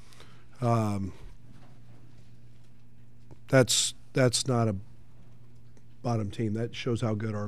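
A middle-aged man speaks slowly and thoughtfully into a microphone, with pauses.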